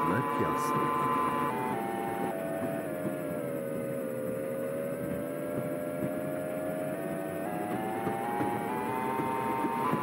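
An electric tram motor whines, its pitch falling in steps as it slows and then rising as it speeds up again.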